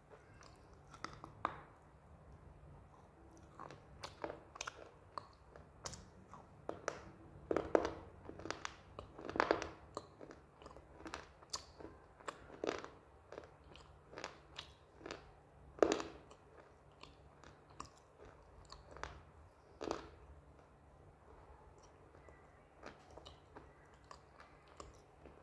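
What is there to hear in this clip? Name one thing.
A woman bites and chews food with wet, smacking mouth sounds very close to a microphone.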